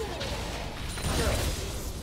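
A loud blast booms in a video game.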